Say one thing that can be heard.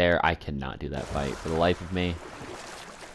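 Oars splash in water as a wooden boat is rowed.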